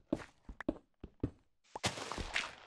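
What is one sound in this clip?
A pickaxe chips and cracks at stone in short knocks.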